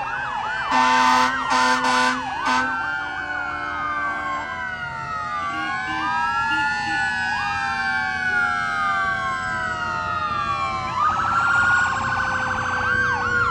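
A vintage truck engine rumbles slowly past nearby.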